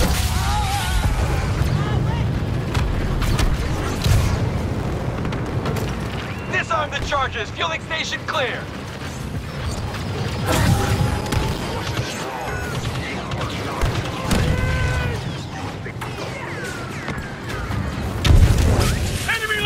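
Jetpack thrusters roar.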